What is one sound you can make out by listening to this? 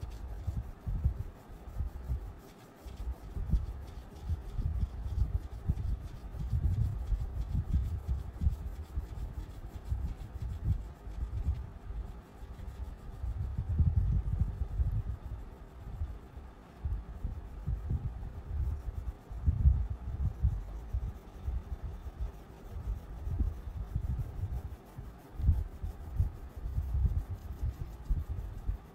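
A crayon scratches and rubs on paper up close.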